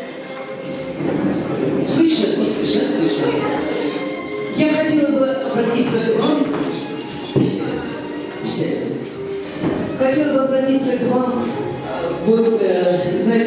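A woman speaks with animation into a microphone, heard through a loudspeaker in an echoing room.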